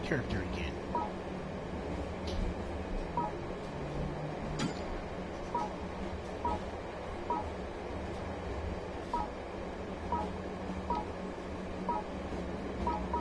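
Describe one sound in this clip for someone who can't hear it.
Short electronic blips sound again and again as a game menu selection moves.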